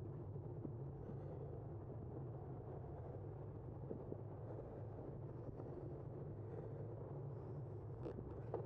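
Wind rumbles low and steady outdoors.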